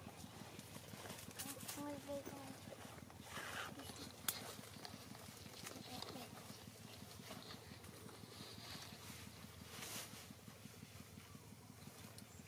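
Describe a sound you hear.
A small monkey rustles a fabric bag as it climbs on it.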